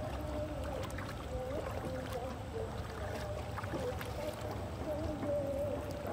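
A fishing net splashes softly into the water.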